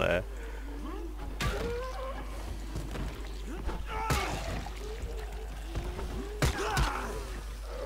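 A wooden bat thuds heavily against bodies.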